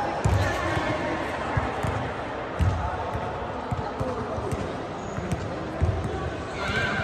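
Badminton rackets strike a shuttlecock back and forth in a large echoing hall.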